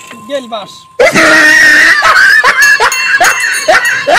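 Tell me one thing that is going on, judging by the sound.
A bicycle bell rings.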